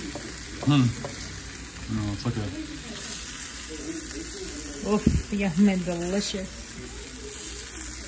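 A metal spatula scrapes across a hot griddle.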